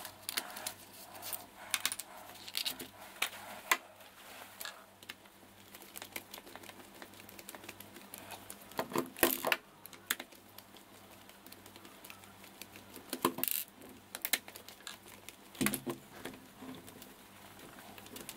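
Small plastic parts click and rattle close by.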